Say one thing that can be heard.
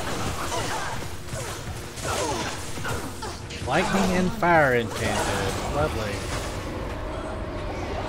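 Video game spell and combat effects whoosh and clash.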